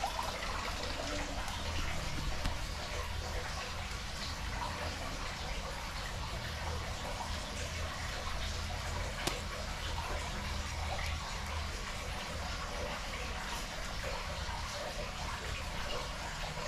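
Live prawns rustle and flick against a plastic tub.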